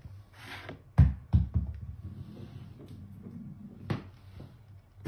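Small objects clatter as a cat knocks them off a table.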